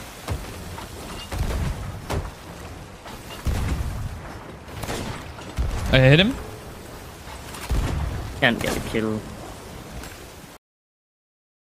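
Cannons boom in heavy, repeated blasts.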